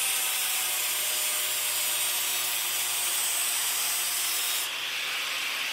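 An angle grinder grinds metal with a loud, harsh screech.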